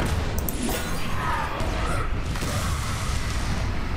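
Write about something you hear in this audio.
A game creature strikes with a magical crash.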